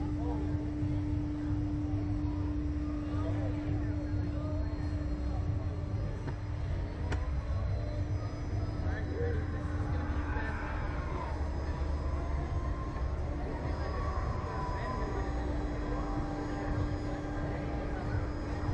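Wind rushes loudly past as a fairground ride swings through the air.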